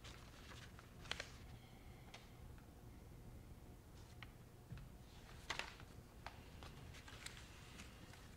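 Paper rustles and taps on a table close by.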